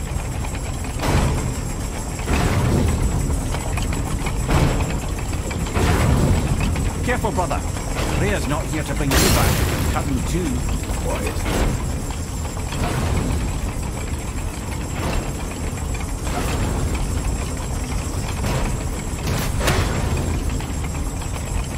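Huge metal gears grind and rumble steadily.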